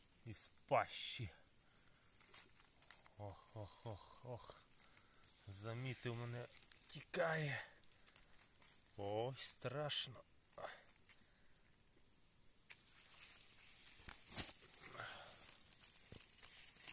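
A snake rustles softly through dry leaves.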